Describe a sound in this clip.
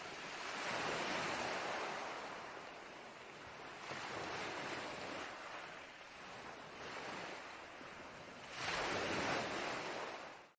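Gentle waves wash over rocks in swelling surges.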